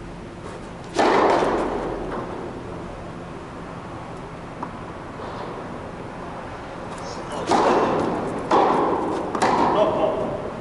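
A tennis racket strikes a ball with sharp pops that echo through a large hall.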